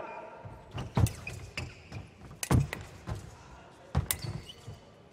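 Fencing blades clash and clatter sharply.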